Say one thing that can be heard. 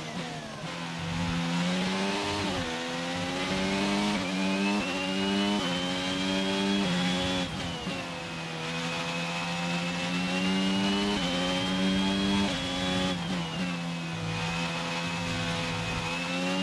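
A racing car engine screams at high revs, rising and dropping sharply with each gear change.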